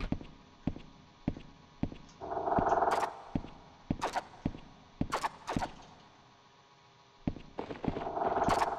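Footsteps thud steadily on a stone floor in an echoing tunnel.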